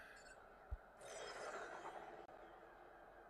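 Laser blasts zap and whine in a space battle.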